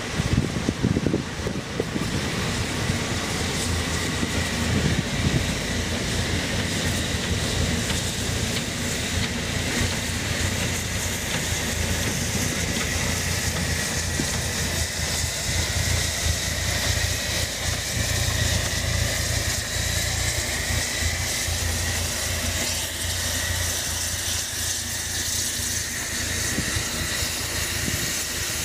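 A steam locomotive hisses as it vents steam.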